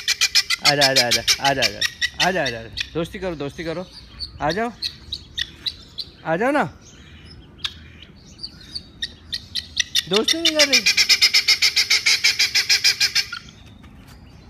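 A guinea fowl calls with loud, rapid, rattling cackles.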